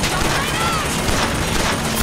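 Fire bursts with a whoosh from a hand.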